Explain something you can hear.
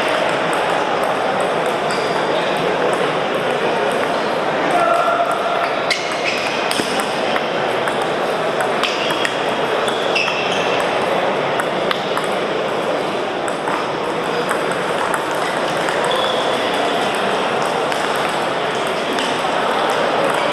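A ping pong ball clicks back and forth on paddles and a table.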